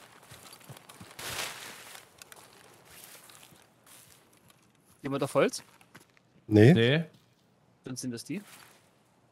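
Leafy branches rustle as someone pushes through bushes.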